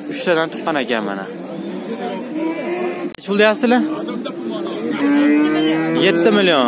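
Men talk loudly close by.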